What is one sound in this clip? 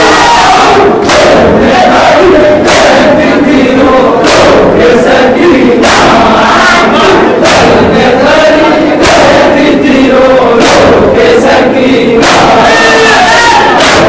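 Many hands slap against chests in a steady, slow rhythm.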